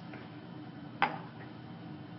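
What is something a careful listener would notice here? A glass beaker clinks down onto a hard counter.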